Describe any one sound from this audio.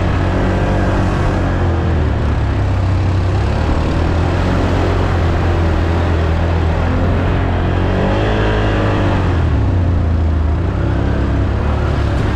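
A quad bike engine roars close by, rising and falling as it revs.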